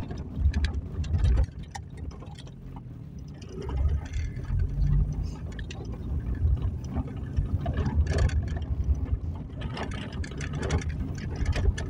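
Tyres roll and bump over a cobbled road.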